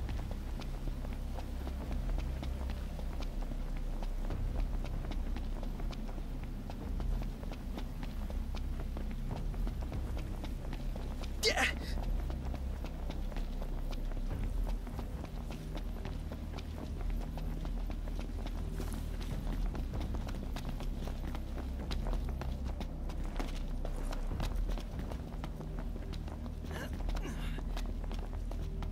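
Footsteps run quickly over a gravel path and then up stone stairs.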